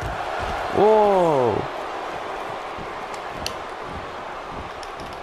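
A large crowd cheers and murmurs steadily in a big arena.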